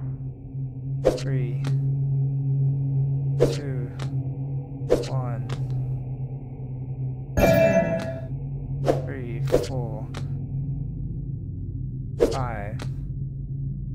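Cards slap down, each with a quick rising swish.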